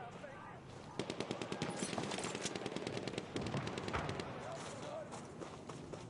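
A machine gun fires rapid bursts.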